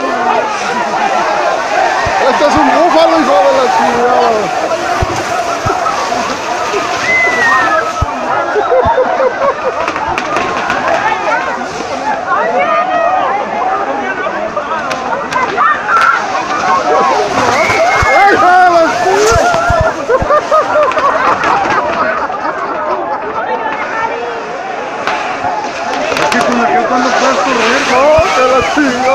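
A crowd of young men and women shouts and cheers excitedly.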